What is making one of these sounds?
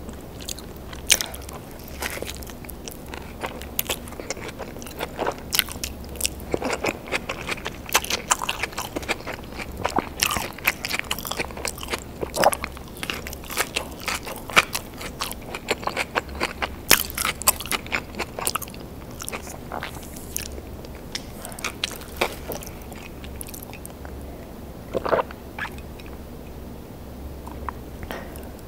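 A woman chews and crunches food close to a microphone, with wet mouth sounds.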